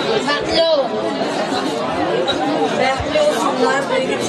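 A woman speaks into a microphone over a loudspeaker.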